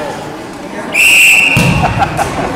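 A referee's whistle blows once, sharp and short.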